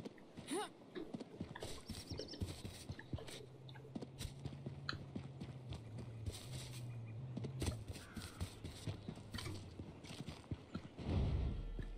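Footsteps swish through grass at a steady pace.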